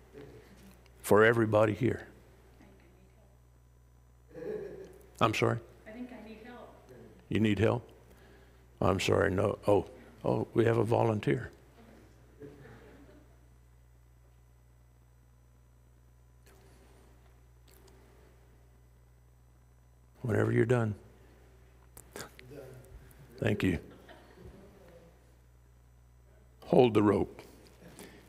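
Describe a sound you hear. A middle-aged man speaks with pauses through a microphone in a large echoing hall.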